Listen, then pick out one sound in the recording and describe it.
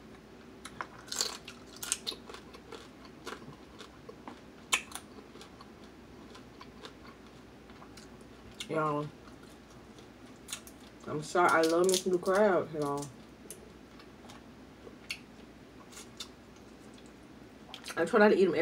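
Crab shells crack and snap between fingers.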